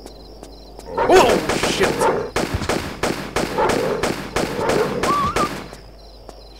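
Pistols fire in rapid bursts.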